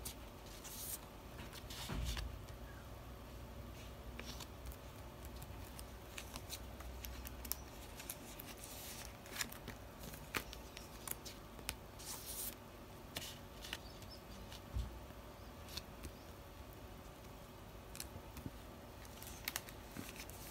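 Plastic sleeves crinkle and rustle as cards are slid in and out.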